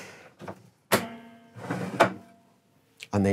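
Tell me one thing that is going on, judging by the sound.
A table clunks and rattles.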